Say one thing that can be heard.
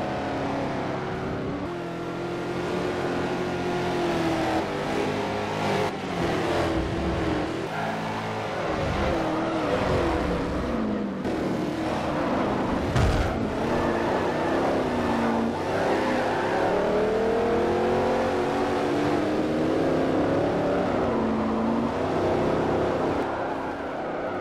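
Race car engines roar and rev up and down through gear changes.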